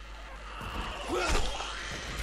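A blade slashes into flesh with a wet, heavy thud.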